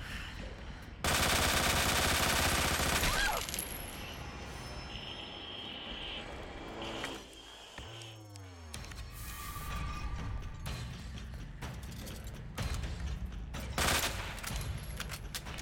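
A shotgun fires with loud blasts.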